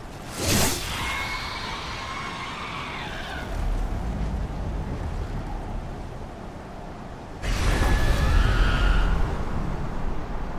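A large beast roars loudly.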